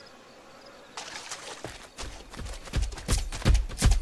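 Weapon blows land with sharp, heavy thuds.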